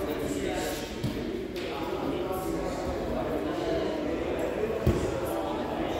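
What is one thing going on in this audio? Bodies thump onto padded mats.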